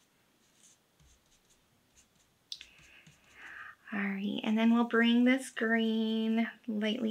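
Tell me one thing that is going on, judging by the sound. A foam applicator dabs softly on paper.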